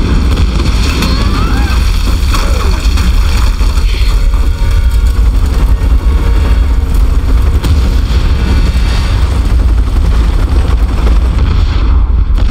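Wooden planks crash and splinter.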